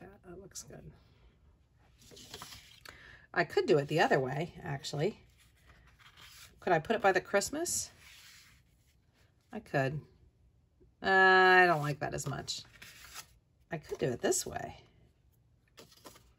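Paper rustles and slides.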